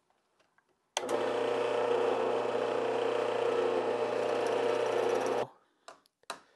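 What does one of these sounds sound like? A drill press whirs steadily as it bores into wood.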